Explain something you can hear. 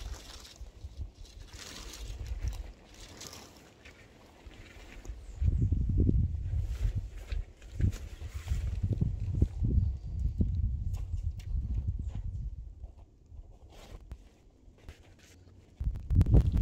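Tent fabric rustles and crinkles as it is pulled and shaken.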